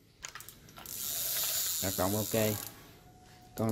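A fishing reel spins with a soft whirring rush.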